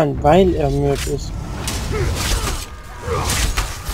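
Blades clash and strike during a fight.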